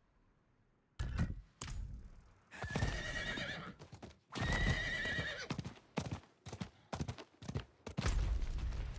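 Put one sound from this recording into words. A horse's hooves thud on dry ground.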